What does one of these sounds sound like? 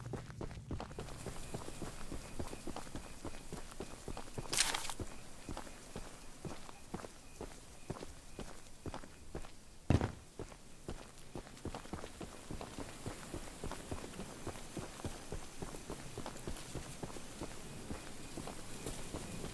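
Footsteps crunch through dry grass outdoors.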